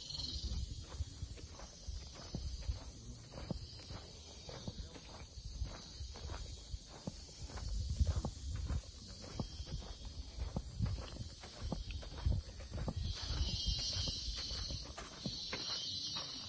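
Footsteps scuff steadily along a rough concrete path outdoors.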